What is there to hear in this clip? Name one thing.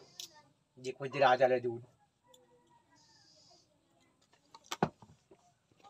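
A man sips a drink from a cup.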